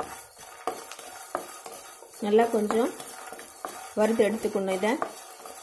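A wooden spatula scrapes and clicks against a metal pan, stirring dry nuts.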